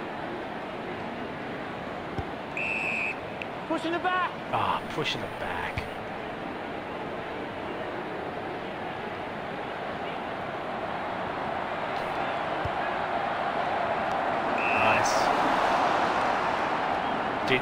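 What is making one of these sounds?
A large crowd roars steadily in a big stadium, swelling louder toward the end.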